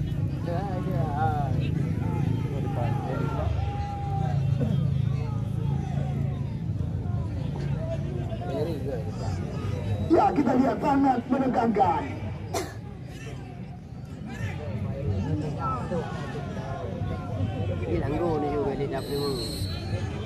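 Several men chatter and call out nearby outdoors.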